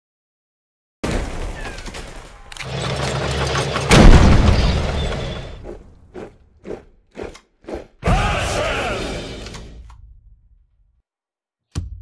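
An explosion booms and rumbles, followed by sharp clattering hits.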